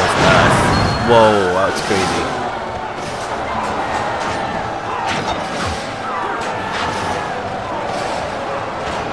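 Weapons clash and clang in a chaotic battle.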